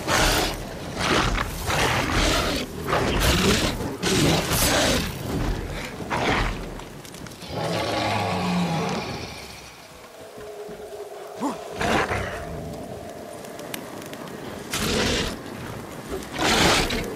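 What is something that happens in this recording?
A sword swishes and strikes against a large creature in a fight.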